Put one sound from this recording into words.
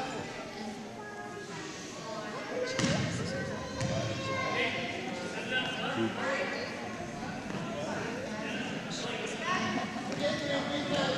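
Sneakers squeak and patter on a wooden floor.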